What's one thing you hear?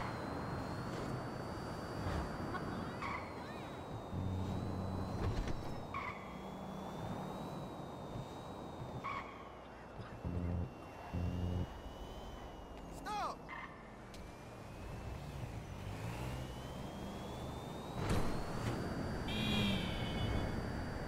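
A sports car engine roars steadily as the car speeds along.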